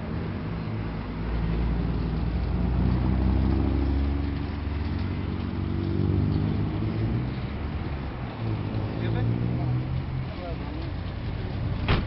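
A man talks close by, outdoors.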